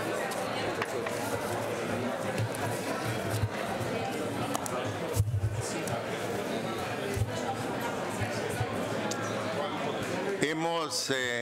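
A crowd of people chatter at once in a large echoing hall.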